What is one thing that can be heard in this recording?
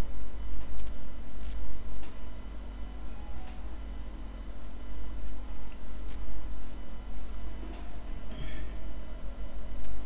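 An elderly man talks calmly through a headset microphone.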